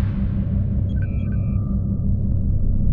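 An interface chimes with a few short electronic beeps.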